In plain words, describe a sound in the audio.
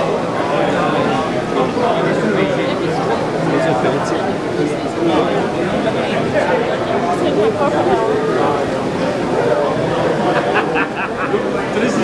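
A crowd of people chatter all around in a busy indoor hall.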